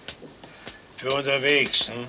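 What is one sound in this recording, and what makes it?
An elderly man speaks firmly, close by.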